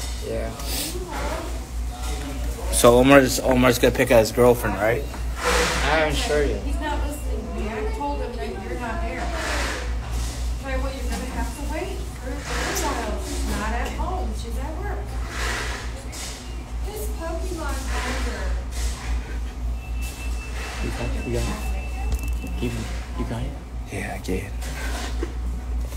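A young man talks casually, close to the microphone.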